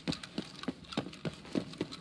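A fire crackles in a barrel.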